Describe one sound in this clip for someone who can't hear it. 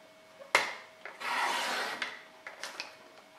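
A paper trimmer blade slides and slices through card.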